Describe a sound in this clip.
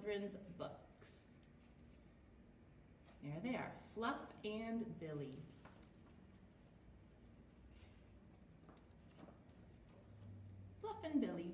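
A young woman reads aloud expressively, close to the microphone.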